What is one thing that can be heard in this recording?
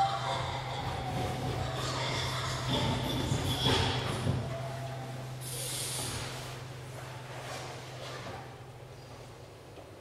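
A man speaks with feeling in a large echoing hall.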